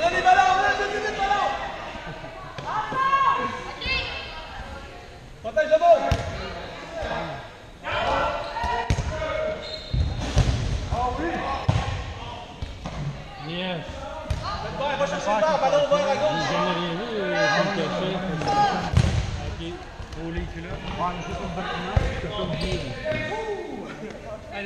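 Young men talk and call out close by, echoing in a large hall.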